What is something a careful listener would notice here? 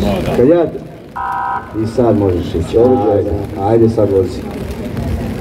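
A man speaks through a loudspeaker outdoors.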